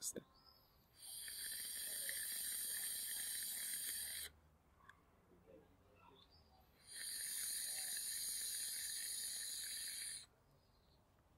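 A vaping device crackles and sizzles as a man inhales.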